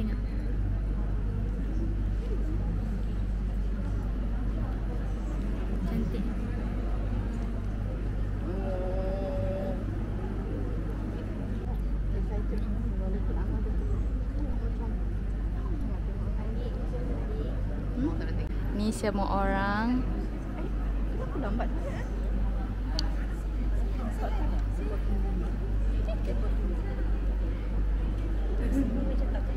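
A crowd of people chatter all around in a large echoing hall.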